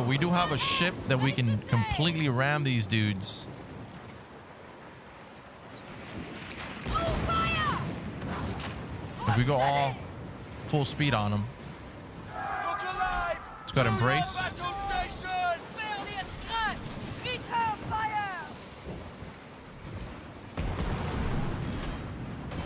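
Stormy waves crash and roar around a sailing ship.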